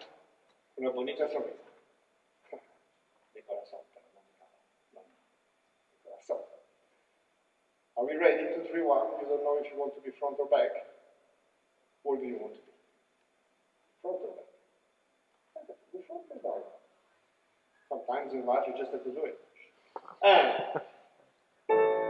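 An elderly man speaks calmly, giving instructions.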